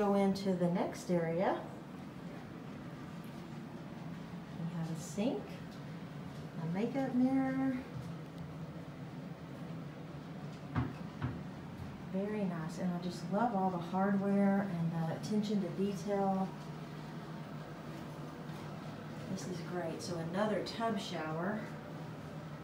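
A woman speaks calmly and close by, narrating in short bursts.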